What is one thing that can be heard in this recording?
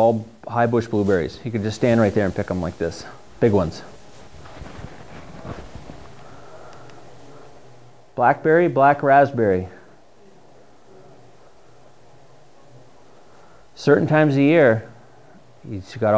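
A man speaks calmly, pausing between phrases.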